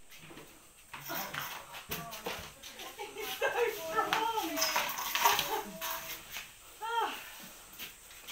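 A woman shouts excitedly nearby.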